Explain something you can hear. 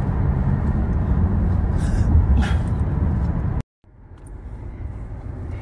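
A car's engine and road noise rumble steadily from inside the car.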